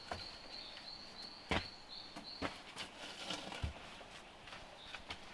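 Bamboo poles knock and clatter as they are laid on a frame.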